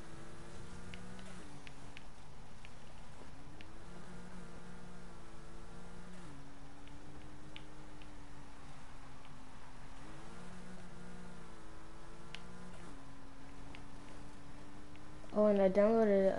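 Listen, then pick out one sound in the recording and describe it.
A car engine roars and revs up and down.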